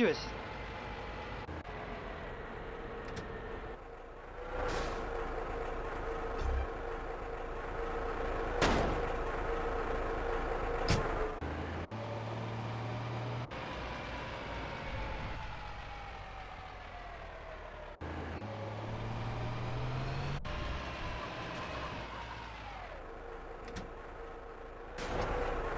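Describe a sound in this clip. A heavy truck engine rumbles and revs.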